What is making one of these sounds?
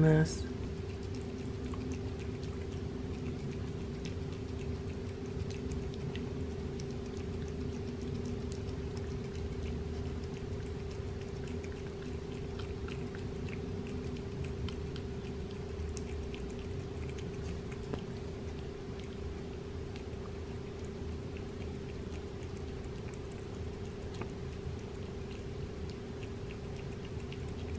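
A cat chews and licks wet food with small wet smacking sounds.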